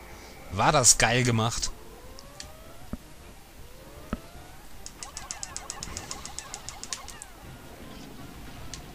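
Tiny cartoon creatures chirp and squeak in a game.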